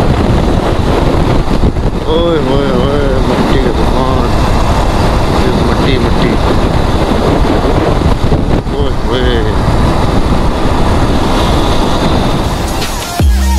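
Wind roars loudly past a motorcycle.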